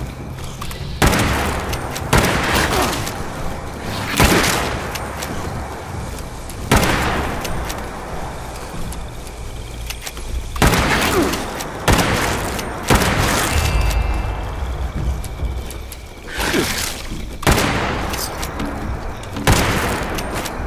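Loud gunshots boom one at a time, with ringing echoes.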